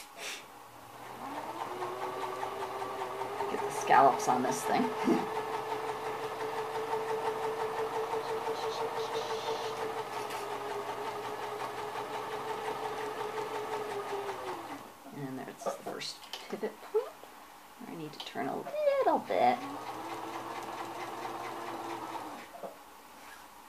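A sewing machine runs with a steady whirring hum.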